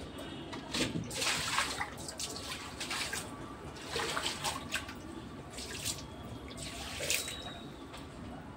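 Water pours and splashes onto a concrete floor.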